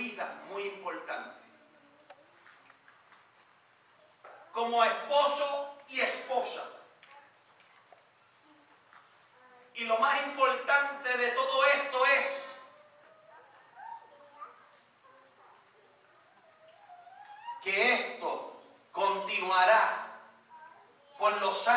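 A man speaks calmly into a microphone, heard through a loudspeaker in an echoing room.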